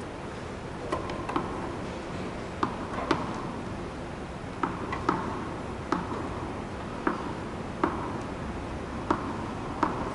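A tennis ball bounces on a hard court with soft, regular thuds.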